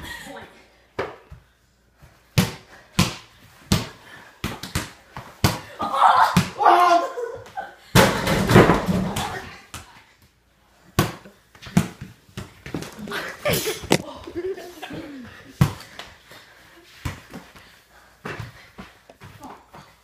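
A basketball bounces on a hard floor indoors.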